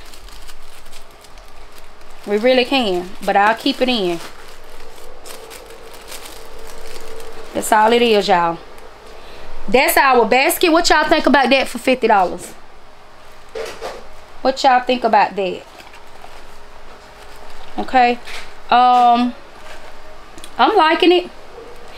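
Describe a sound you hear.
Plastic wrapping crinkles as items are handled.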